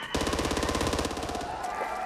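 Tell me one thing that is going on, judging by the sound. A gun fires a short burst.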